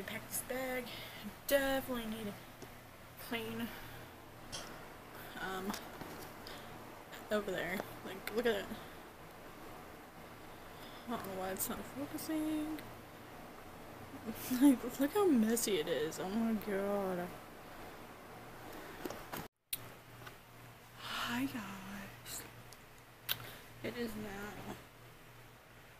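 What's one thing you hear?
A young woman talks casually and close up.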